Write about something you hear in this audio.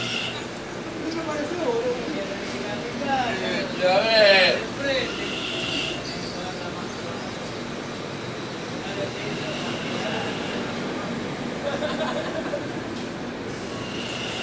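A train hums steadily while standing close by.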